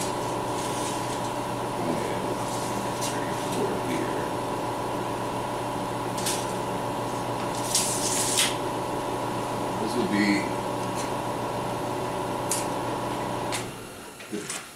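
An electric welder hums steadily and crackles.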